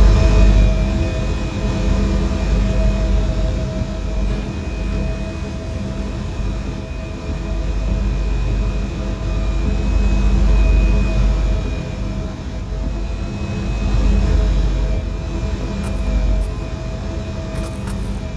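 A train's motor whines with a high, steady tone.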